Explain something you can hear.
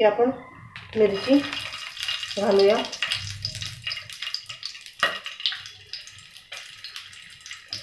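Green chilies sizzle in hot oil in a pan.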